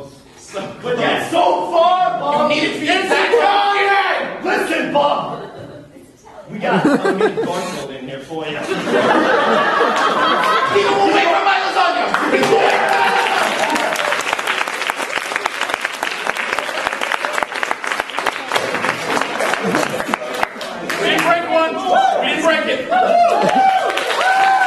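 Young men talk and shout with animation on a stage.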